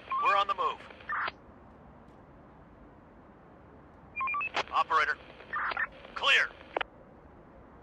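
Short electronic interface chimes and clicks play in bursts.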